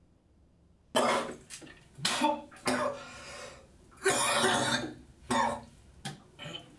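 A young man retches and coughs close by.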